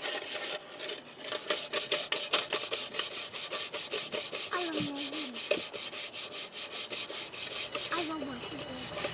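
Children tap metal spoons rapidly against metal dishes.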